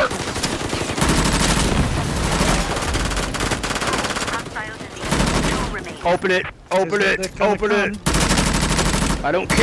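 A gun fires rapid bursts close by.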